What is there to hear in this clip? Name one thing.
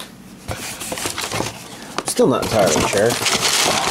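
A plastic case is set down on a hard surface.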